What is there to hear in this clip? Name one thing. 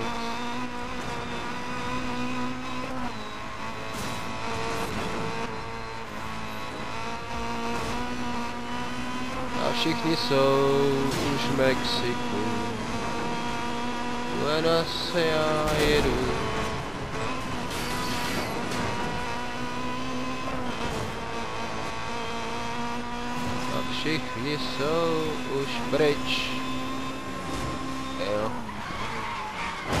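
A racing car engine whines at high revs throughout.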